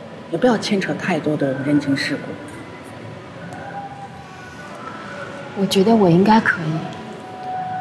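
A young woman speaks quietly and thoughtfully, close by.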